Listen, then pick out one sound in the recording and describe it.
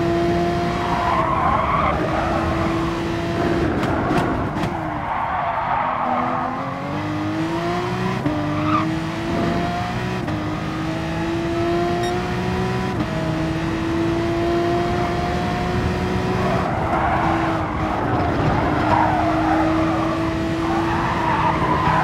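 Tyres squeal on tarmac through the corners.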